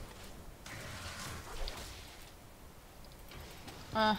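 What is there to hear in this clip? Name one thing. Magic blasts whoosh and crackle in quick bursts.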